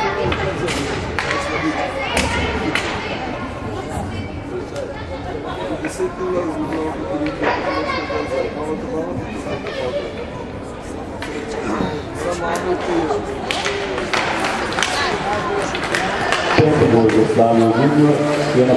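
Children's voices call out in a large echoing rink.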